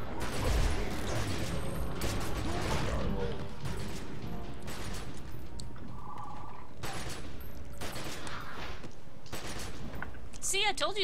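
Magic spells and blows clash in a battle.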